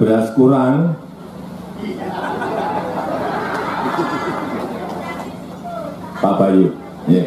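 A crowd laughs and murmurs.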